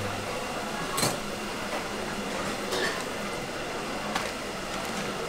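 Dumplings are dropped into a hot pan with soft sizzling bursts.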